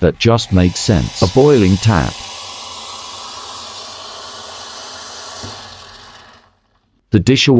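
Water hisses and pours steadily from a tap, then fades.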